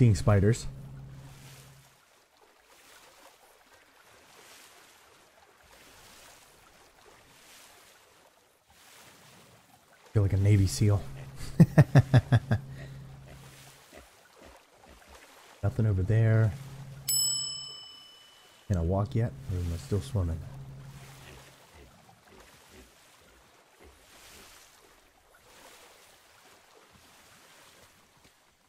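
Water splashes softly as a swimmer paddles.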